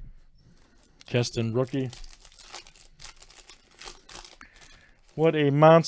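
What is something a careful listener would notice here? A foil card wrapper crinkles as it is torn open.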